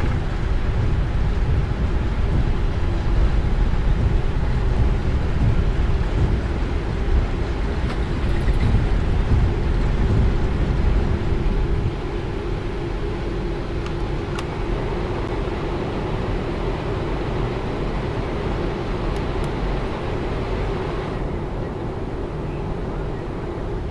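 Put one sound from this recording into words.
Jet engines roar loudly and steadily.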